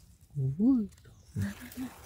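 A knife slices softly through a mushroom stem.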